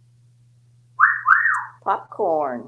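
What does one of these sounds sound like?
A parrot whistles in short rising and falling notes.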